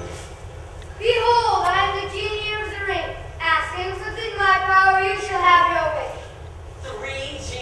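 A young performer sings a slow, wavering melody on stage through a microphone.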